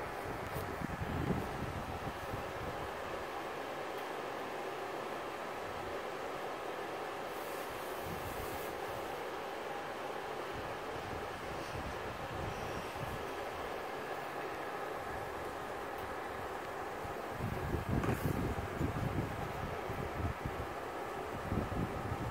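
Electric fans whir and hum steadily.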